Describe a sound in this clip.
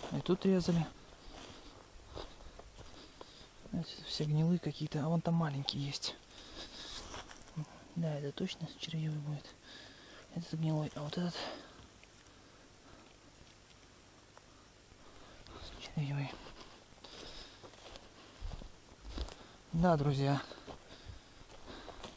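Quick footsteps crunch and rustle through low forest undergrowth.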